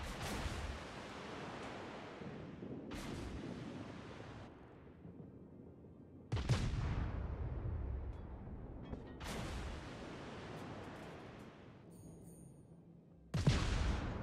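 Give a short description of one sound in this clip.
Shells splash into the sea.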